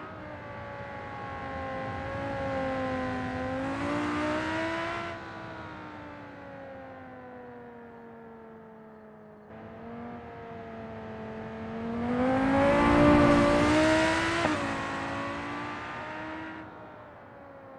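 A sports car engine roars, rising and falling in pitch as the car speeds up and slows down.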